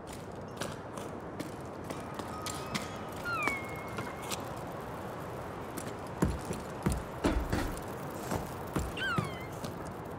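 Footsteps thud and knock on wooden boards.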